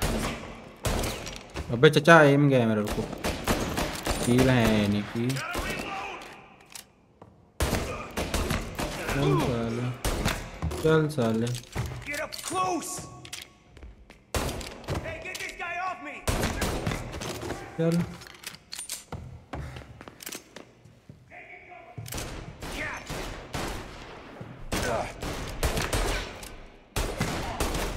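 Pistol shots ring out in quick bursts, echoing in a large hall.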